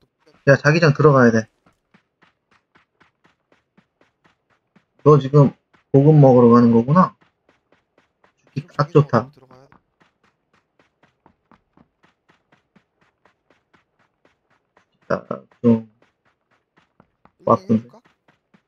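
Footsteps thud quickly on dry ground.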